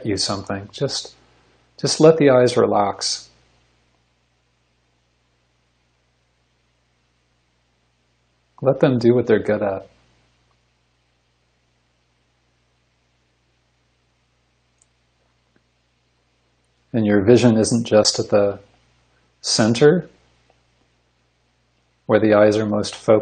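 A man speaks calmly over an online call, in short bursts with long silent pauses.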